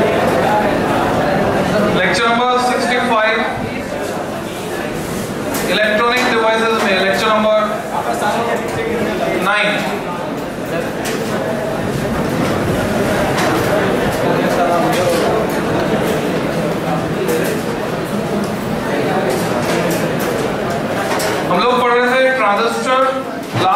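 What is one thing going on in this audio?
A crowd of students murmurs and chatters in the background.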